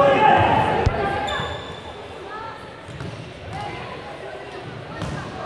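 Spectators in a large echoing hall shout and cheer.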